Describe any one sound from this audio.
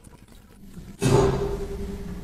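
Water sprays and hums inside a running dishwasher.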